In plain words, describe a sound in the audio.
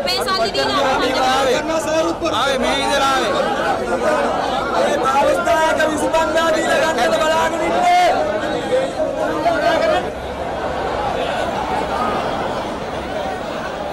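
A large crowd murmurs and shouts in the background.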